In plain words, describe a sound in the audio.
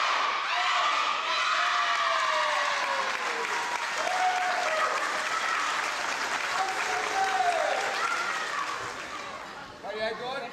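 Young girls shout and squeal excitedly in an echoing pool.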